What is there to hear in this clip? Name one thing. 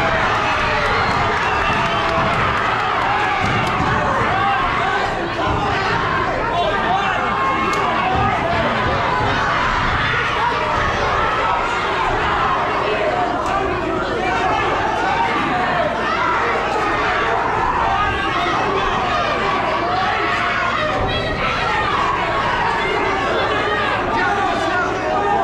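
A crowd of spectators chatters and shouts loudly in a large tent.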